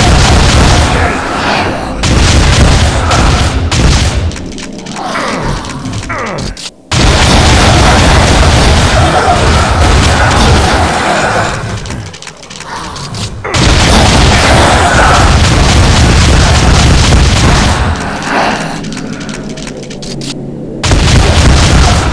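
A shotgun fires loud, booming blasts again and again.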